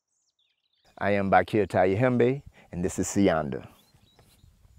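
A man speaks calmly and warmly into a close microphone.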